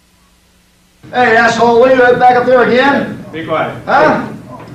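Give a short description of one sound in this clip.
An elderly man speaks loudly and with animation.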